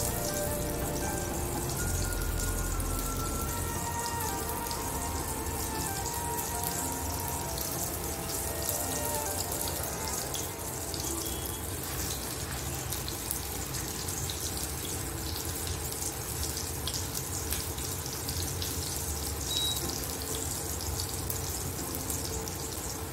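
Hands squish and knead raw minced meat.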